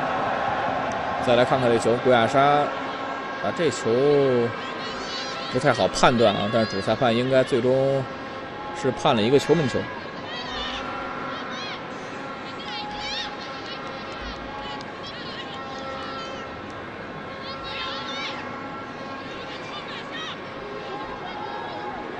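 A crowd murmurs and cheers in an open stadium.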